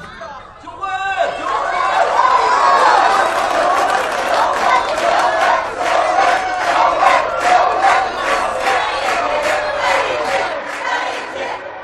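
A crowd chants together and cheers loudly.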